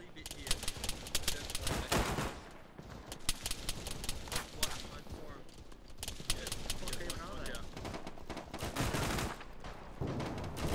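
Rifle shots crack rapidly in bursts.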